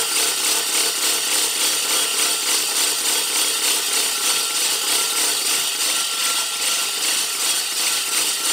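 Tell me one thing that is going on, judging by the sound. The blades of a push reel mower spin with a steady, fast whirring and light clicking.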